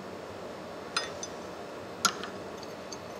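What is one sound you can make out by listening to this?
A metal tool clicks.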